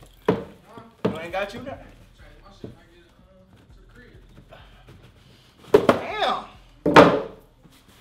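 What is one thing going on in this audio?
A cardboard box thumps and scrapes across the floor.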